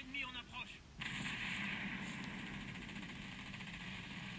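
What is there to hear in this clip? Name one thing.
Heavy naval guns fire with loud booms.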